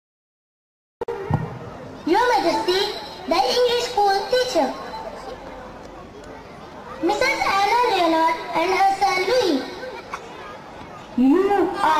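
A boy speaks loudly and theatrically on an open stage.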